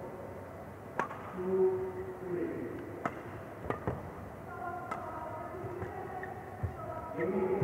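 A shuttlecock is struck sharply back and forth with rackets.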